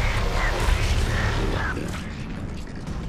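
A crackling burst of energy roars loudly.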